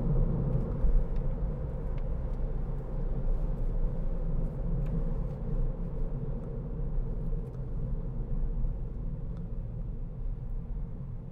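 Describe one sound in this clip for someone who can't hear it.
Tyres roll and rumble on a road.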